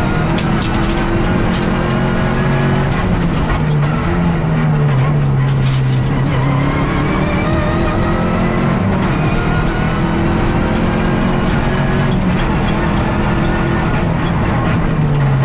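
Gravel and stones clatter against the underside of the car.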